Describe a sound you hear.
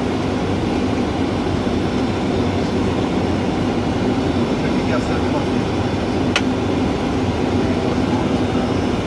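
A steady low roar of engines and rushing air.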